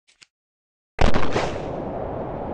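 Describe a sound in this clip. A rifle fires with a sharp bang.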